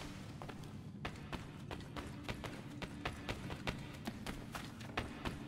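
Footsteps patter quickly on wooden boards.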